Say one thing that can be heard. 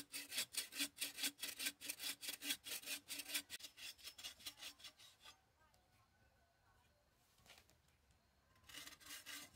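A hand saw cuts back and forth through a wooden post.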